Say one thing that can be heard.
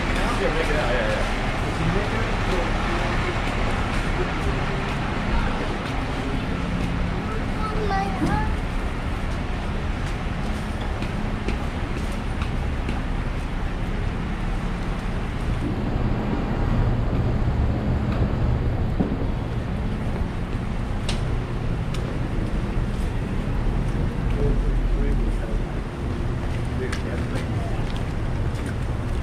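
Footsteps tap on a wet pavement.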